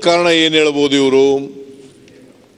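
A man calls out loudly in a long, drawn-out voice.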